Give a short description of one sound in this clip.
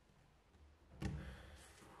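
A pen knocks on a wooden table.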